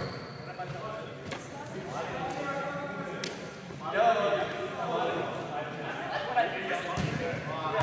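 Several young men talk and call out in a large echoing hall.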